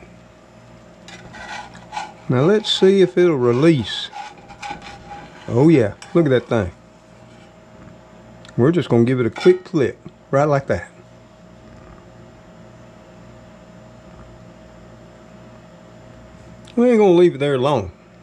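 A metal spatula scrapes against an iron pan.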